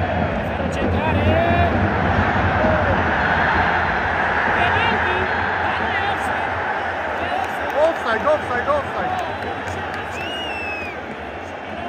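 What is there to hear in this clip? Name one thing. Fans whistle sharply in the crowd.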